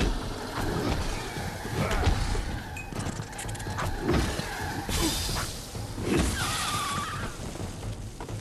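Heavy blows land with deep thuds and clangs in a fight.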